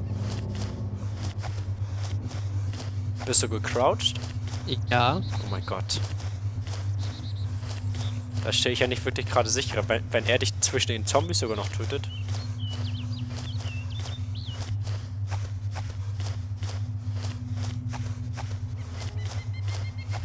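Grass rustles steadily as someone crawls through it.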